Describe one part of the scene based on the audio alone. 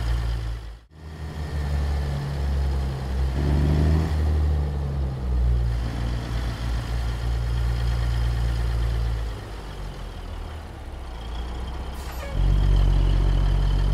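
A truck's engine revs up and chugs as the truck pulls forward.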